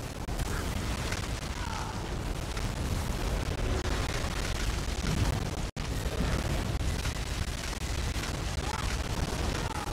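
Spell effects crackle and boom in a dense, rapid battle.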